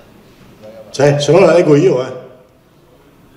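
A man calls out loudly through a loudspeaker in a large echoing hall.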